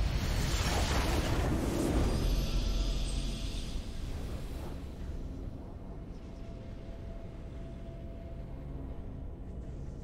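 Triumphant music swells and plays.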